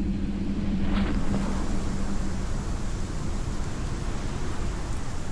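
Rock bursts apart in a loud blast.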